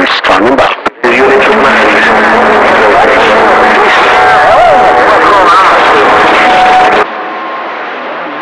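A radio loudspeaker crackles and hisses with loud static.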